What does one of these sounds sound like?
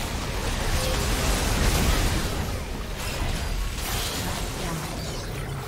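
Magical spell effects whoosh and burst in a fast video game battle.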